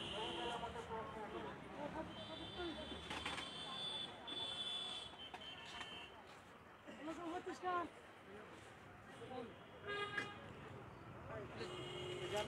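Men chat nearby outdoors.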